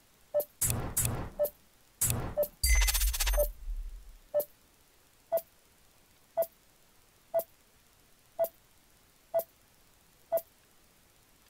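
A countdown timer beeps once a second.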